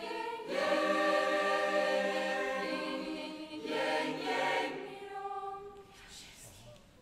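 A large choir of young voices sings a sustained chord in a reverberant hall and fades out.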